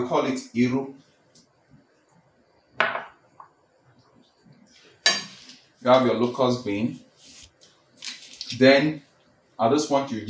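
A metal ladle scrapes and stirs a stew in a metal pot.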